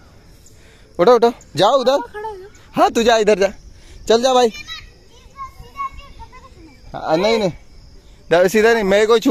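A boy shouts and laughs loudly close by, outdoors.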